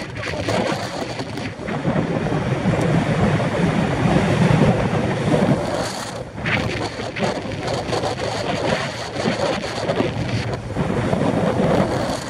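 Wind buffets a nearby microphone outdoors.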